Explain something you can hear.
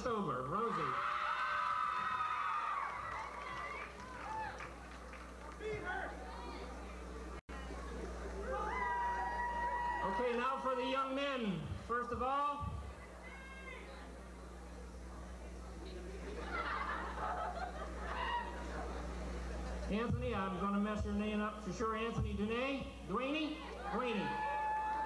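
A crowd of young men and women chatters in a large echoing hall.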